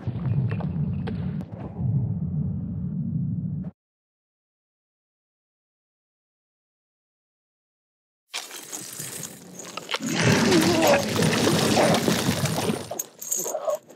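A monster snarls and growls close by.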